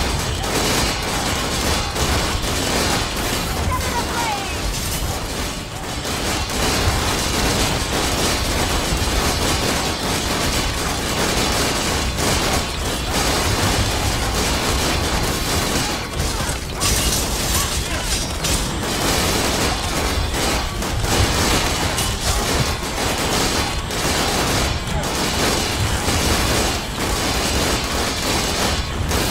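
Video game combat effects clash and crackle in a crowded battle.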